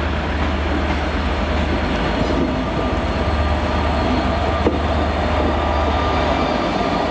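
A diesel locomotive engine rumbles loudly as a train approaches and passes close by.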